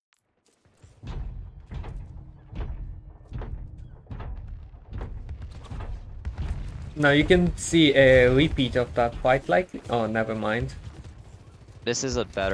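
Video game gunfire crackles in rapid bursts.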